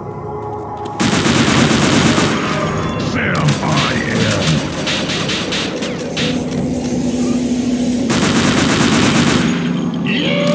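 An automatic gun fires rapid bursts of shots.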